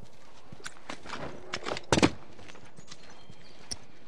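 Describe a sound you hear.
A body thuds while climbing through a window.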